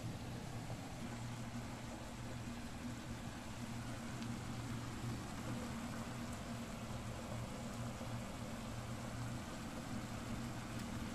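Food sizzles in a frying pan.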